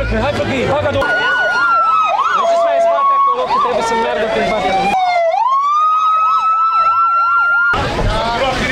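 An emergency siren wails loudly and rises and falls.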